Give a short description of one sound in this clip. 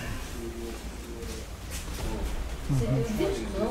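A man talks calmly nearby in a room.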